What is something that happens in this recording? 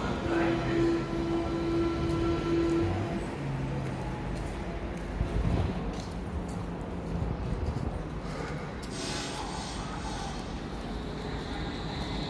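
An electric train hums while standing at a platform.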